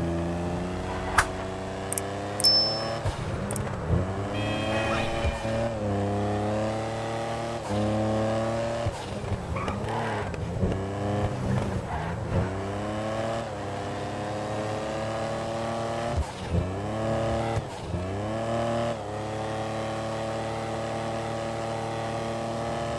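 A car engine revs up and down through gear changes as it speeds along a road.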